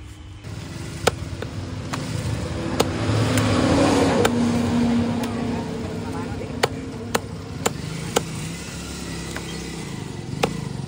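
A machete chops meat on a wooden block with sharp knocks.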